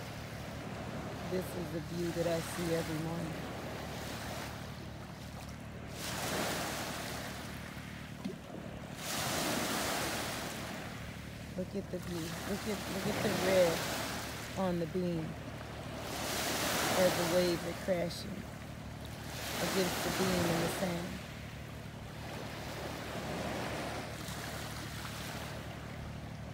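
Small sea waves wash and splash against a boat's hull.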